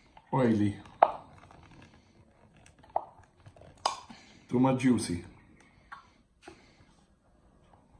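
A metal can lid pops and peels open.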